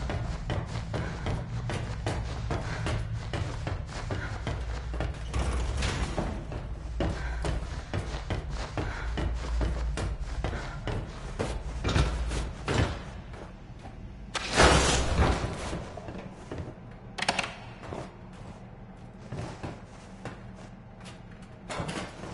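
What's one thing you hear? Footsteps clank steadily on a metal grate floor.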